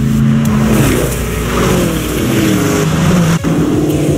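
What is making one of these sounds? An off-road buggy's engine roars and revs.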